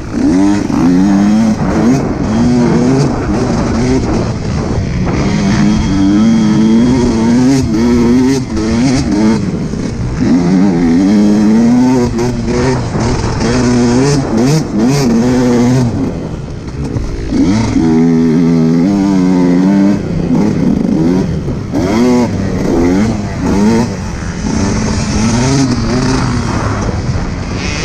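A dirt bike engine roars loudly up close, revving up and down.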